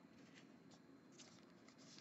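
A plastic wrapper rustles.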